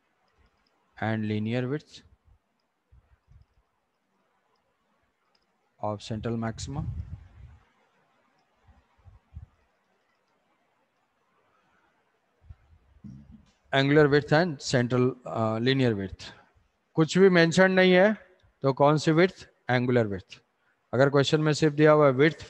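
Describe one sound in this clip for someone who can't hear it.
A young man speaks calmly into a close microphone, pausing often.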